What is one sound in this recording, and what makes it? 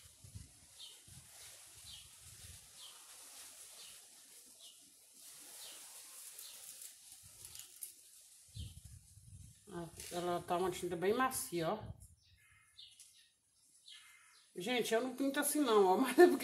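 A paintbrush scrapes softly over wooden boards.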